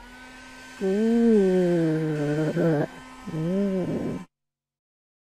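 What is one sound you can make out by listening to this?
A hair dryer blows with a steady whirring hiss.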